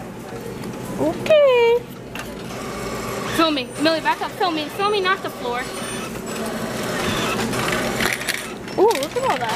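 A recorded woman's voice speaks calmly through a checkout machine's small loudspeaker.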